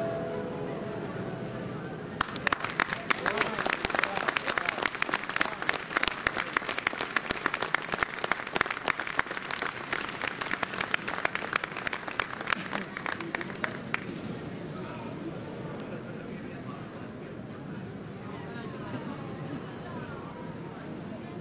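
A grand piano plays in a large, echoing hall.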